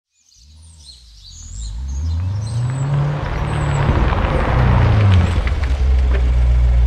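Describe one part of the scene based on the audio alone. A sports car engine rumbles, growing louder as the car approaches and pulls up.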